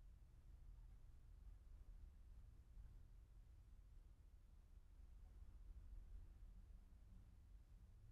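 A car engine hums as a car drives slowly closer and passes nearby.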